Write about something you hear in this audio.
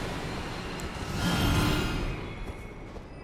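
A magic sword attack swishes with a bright shimmering sweep.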